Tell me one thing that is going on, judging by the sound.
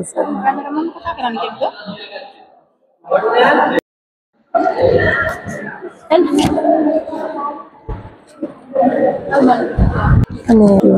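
Several women talk nearby in a room with some echo.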